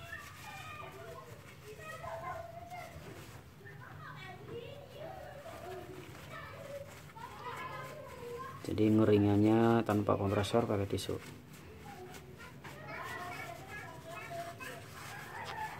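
Tissue paper rustles softly while a small part is wiped.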